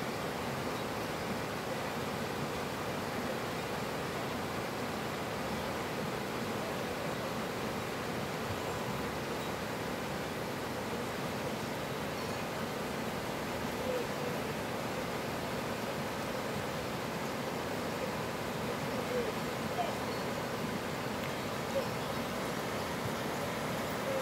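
A fast mountain stream rushes and splashes over rocks close by.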